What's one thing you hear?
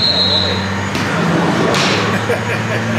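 A woman kicks a football with a thud.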